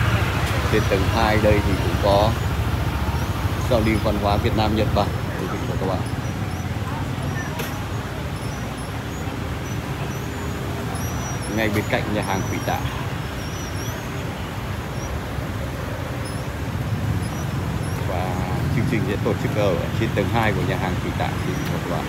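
A young woman talks nearby in passing.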